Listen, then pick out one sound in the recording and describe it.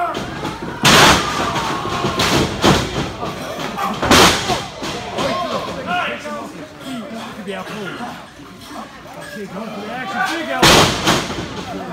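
Wrestlers' bodies slam heavily onto a ring mat.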